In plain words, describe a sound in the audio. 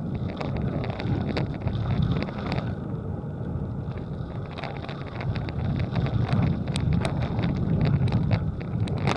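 Wind gusts steadily across open ground outdoors.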